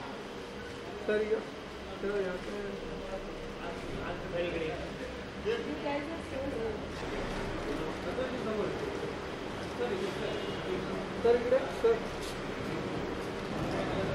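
A middle-aged man speaks close to a microphone.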